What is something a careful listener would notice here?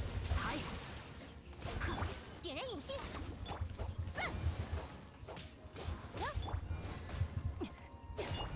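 Video game combat effects thud, slash and burst in quick succession.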